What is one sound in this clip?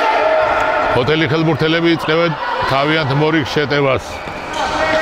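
Young players shout in a large echoing hall.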